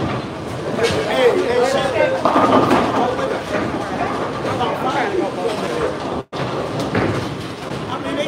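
A bowling ball rolls and rumbles down a lane.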